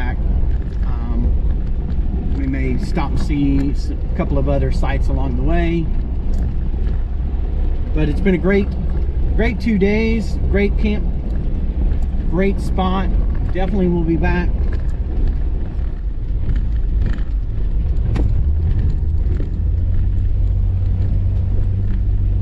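Tyres crunch and rumble over a bumpy dirt road.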